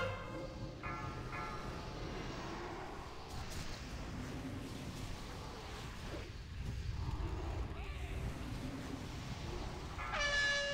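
Magic spells chime and whoosh in a battle.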